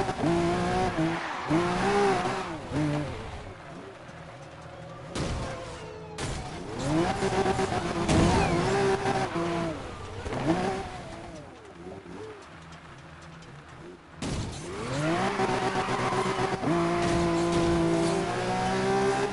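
A sports car engine roars and revs up and down.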